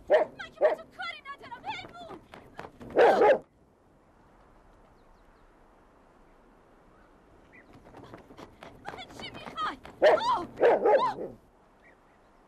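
A large dog barks.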